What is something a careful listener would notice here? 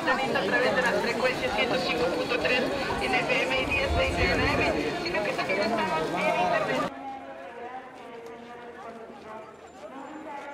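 A large crowd of men and women chatters all around outdoors.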